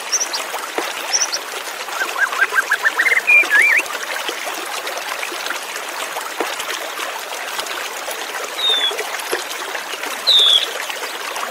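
A white-rumped shama sings loud whistled phrases.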